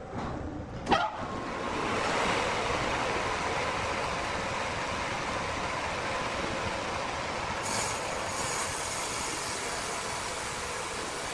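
A large saw cuts through a wooden block with a steady rough whir.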